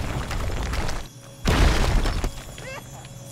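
A game laser beam crackles and buzzes.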